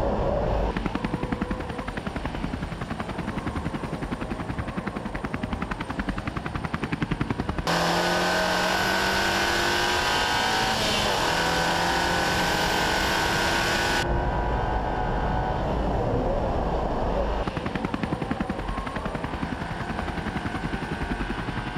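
A car engine roars at high revs, rising and falling as gears change.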